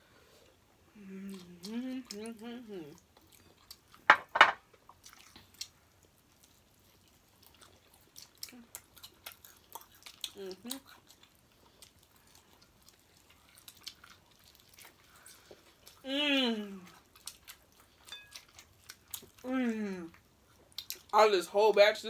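Food crunches and smacks as two young women eat.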